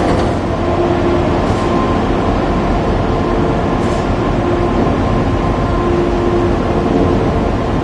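A diesel high-speed train rolls slowly onto a ferry.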